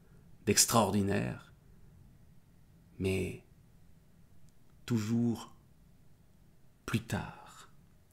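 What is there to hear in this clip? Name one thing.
A man speaks close to a microphone with animation, in short bursts with pauses.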